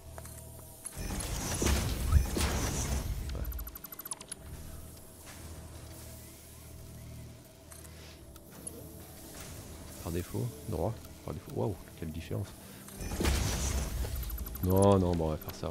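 Electronic whooshes and soft clunks sound as building parts snap into place.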